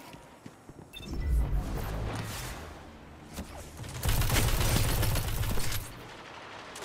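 A gun fires in a video game.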